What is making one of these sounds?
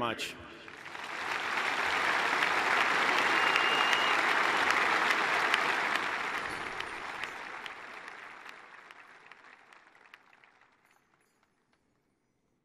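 A large crowd cheers and applauds, then fades away.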